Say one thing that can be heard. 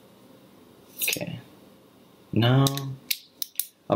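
Makeup brushes rattle and clack together in a hand.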